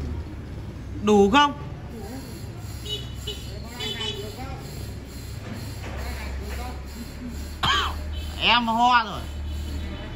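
Men call out loudly to each other outdoors.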